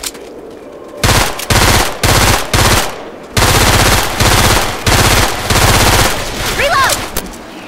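Rapid bursts of automatic gunfire ring out close by.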